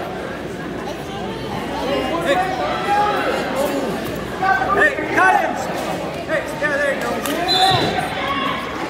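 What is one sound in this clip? A crowd murmurs and chatters throughout a large echoing gym.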